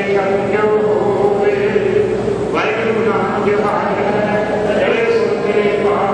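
A crowd of women and children sing together in a steady chant.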